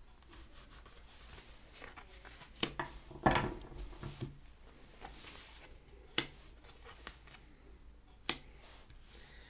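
Cards shuffle and tap lightly on a wooden table.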